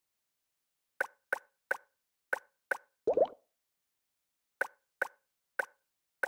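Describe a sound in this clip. Short electronic menu blips sound one after another.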